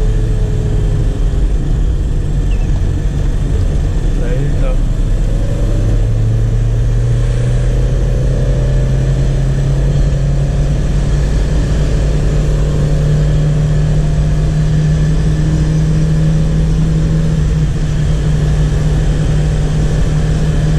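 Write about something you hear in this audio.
A car engine hums loudly from inside the cabin and rises in pitch as it speeds up.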